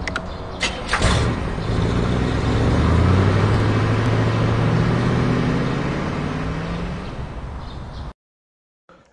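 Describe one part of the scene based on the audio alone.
An ice cream van's engine starts and hums as the van drives off, then fades away.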